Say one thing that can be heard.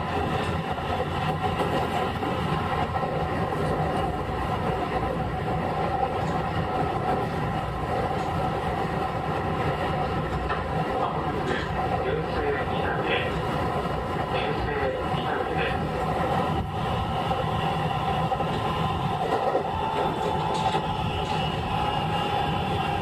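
An electric train hums steadily while standing on the tracks.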